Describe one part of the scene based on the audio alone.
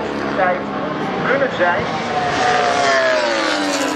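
A racing motorcycle engine roars and shifts gears as it speeds past.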